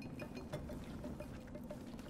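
Footsteps tap lightly on a stone floor.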